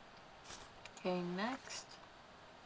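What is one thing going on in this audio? A young woman speaks briefly and casually, close to a microphone.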